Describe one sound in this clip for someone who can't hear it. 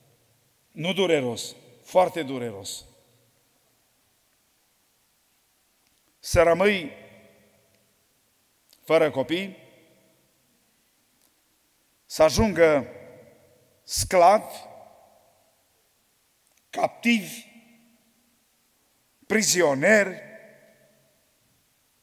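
A man speaks slowly and emphatically into a microphone in an echoing hall, with long pauses between phrases.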